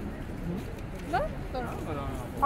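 A young woman laughs nearby.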